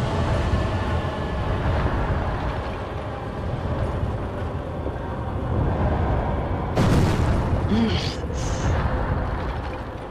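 A huge beast lets out a deep, rumbling roar.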